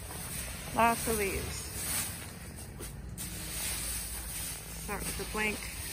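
A rake scrapes and rustles through dry leaves.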